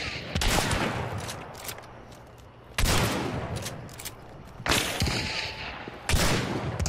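Heavy gunshots ring out one at a time, each echoing away outdoors.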